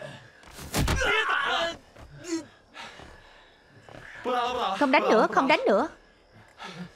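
A man speaks angrily and loudly nearby.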